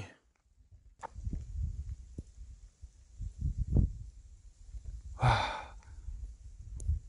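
Wind rumbles softly outdoors.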